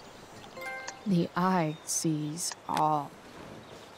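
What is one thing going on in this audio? A young woman speaks calmly in short phrases.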